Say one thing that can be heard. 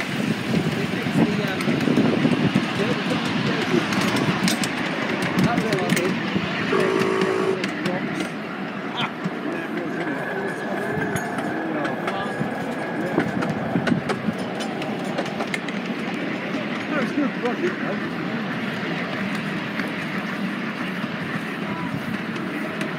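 A small train rumbles and clatters steadily along a track.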